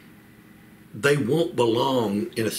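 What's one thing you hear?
A middle-aged man speaks calmly and clearly into a nearby microphone.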